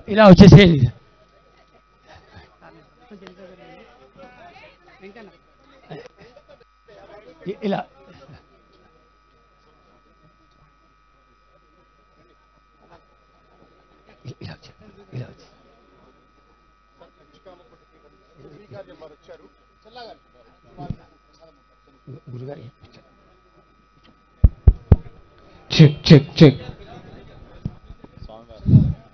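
Men talk and murmur in a crowd outdoors.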